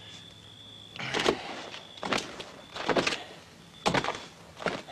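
Boots thump slowly on a hard floor.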